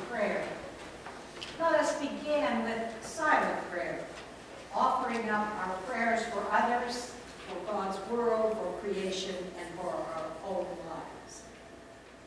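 An elderly woman speaks with animation through a microphone.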